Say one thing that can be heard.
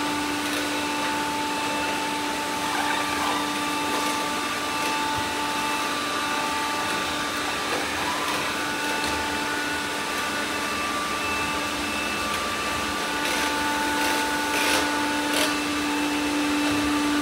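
Several robot vacuums hum and whir steadily.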